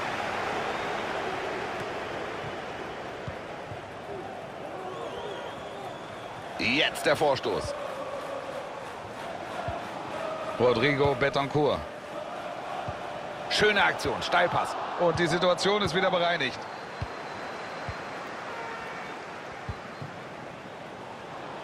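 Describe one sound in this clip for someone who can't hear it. A large stadium crowd roars and murmurs steadily.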